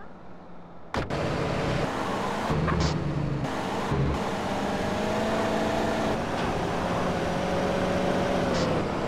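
A car engine roars as the car speeds away.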